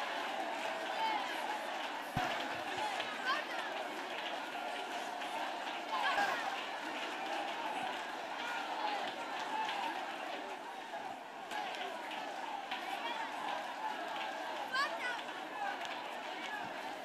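A large crowd of people talks and prays aloud all at once outdoors.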